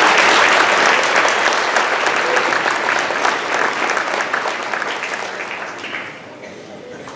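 A large audience applauds loudly in a big hall, fading away.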